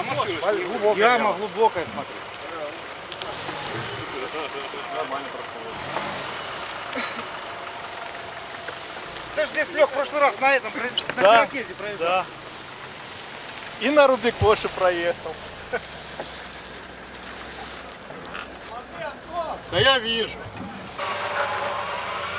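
A car engine runs as the car pushes slowly through tall grass.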